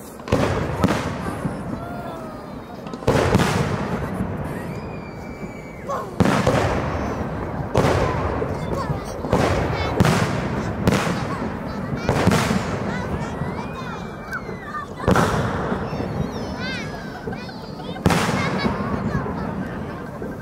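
Fireworks crackle and fizzle after each burst.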